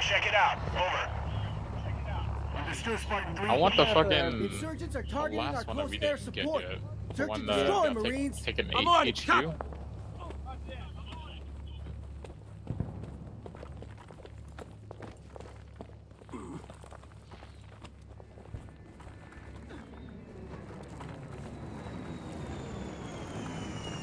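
Footsteps crunch on gravel and rubble.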